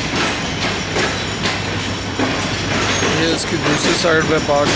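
A train rolls past close by with a low rumble.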